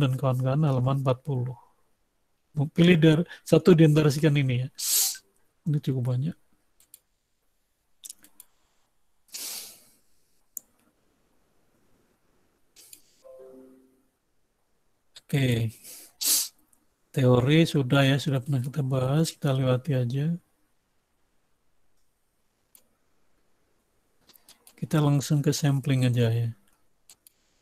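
A man speaks calmly through an online call, pausing often.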